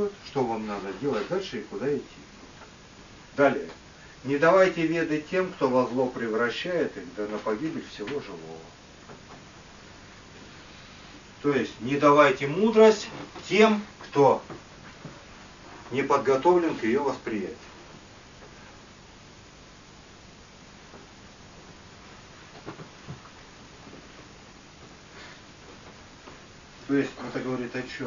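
A man speaks calmly and clearly, with pauses.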